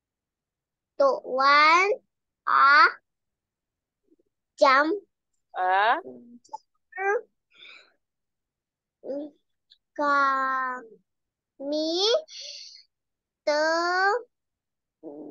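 A young girl reads out words slowly over an online call.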